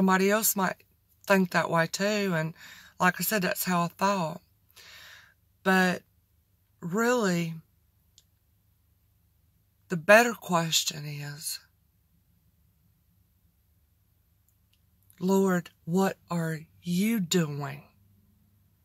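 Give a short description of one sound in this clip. A woman talks with animation close to a microphone, in short bursts with pauses.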